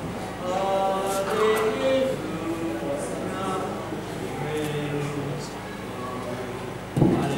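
A man speaks with animation through a loudspeaker in a large echoing space.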